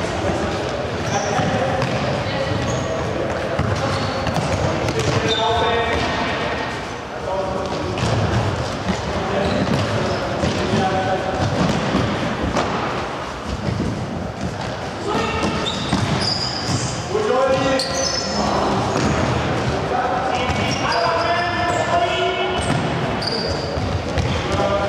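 Sneakers squeak sharply on the hall floor.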